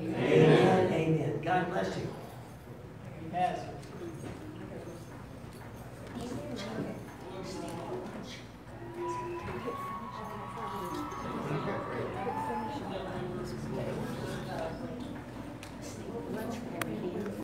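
An electric guitar plays softly through a loudspeaker.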